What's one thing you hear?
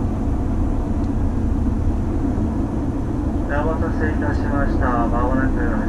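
A train rumbles and hums steadily.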